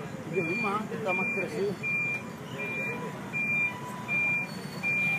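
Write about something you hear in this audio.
A heavy truck engine hums and idles nearby.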